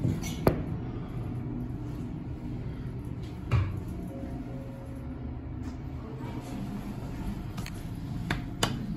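An elevator car hums steadily as it moves.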